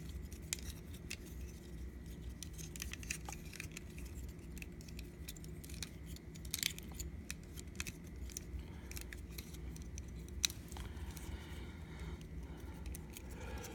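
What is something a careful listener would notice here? Plastic action figure parts click and rattle as they are handled.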